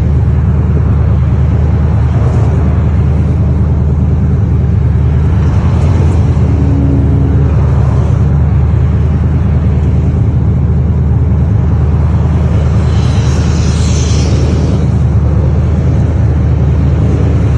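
Cars drive past close by, one after another, on a road outdoors.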